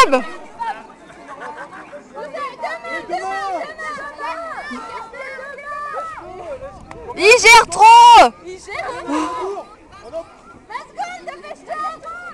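Several adults talk and call out nearby outdoors.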